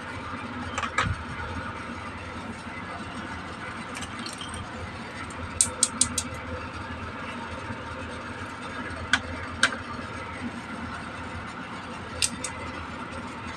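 Small plastic toys click and clatter as they are handled and set down.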